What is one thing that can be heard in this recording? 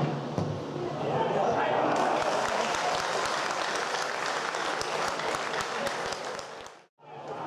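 A crowd cheers.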